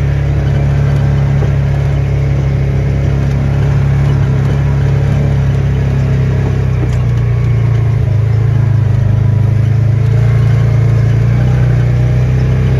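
Tyres roll over rough ground.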